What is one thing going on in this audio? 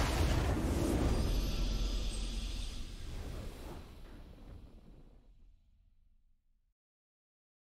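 Triumphant game music swells loudly, then slowly fades away into silence.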